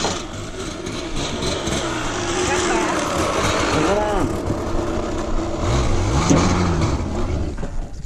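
A dirt bike engine roars closer and revs as it rides past.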